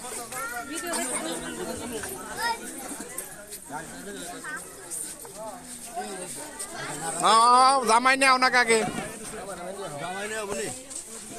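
A crowd of men and women talk all around, close by.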